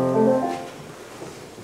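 A large choir sings a final chord that rings briefly in a big hall.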